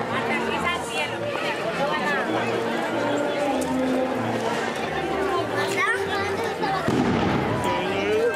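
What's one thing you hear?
A crowd of men and women chatters outdoors close by.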